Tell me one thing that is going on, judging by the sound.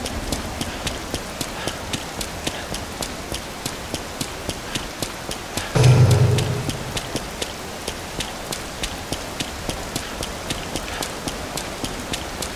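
Quick footsteps slap on wet pavement.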